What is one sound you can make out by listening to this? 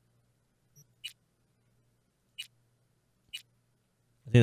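Soft menu clicks tick a few times.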